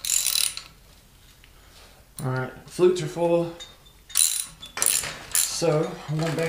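Metal parts clink and clatter.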